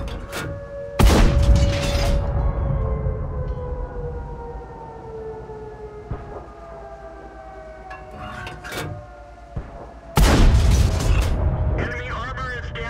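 A tank cannon fires with a loud, booming blast that echoes away.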